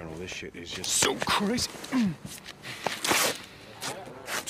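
A young man speaks anxiously, close by.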